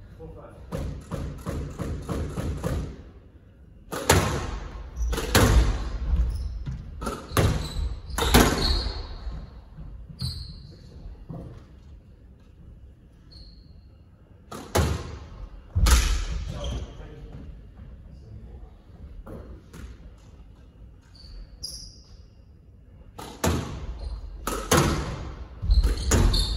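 Squash rackets strike a ball that smacks off the walls of an echoing court.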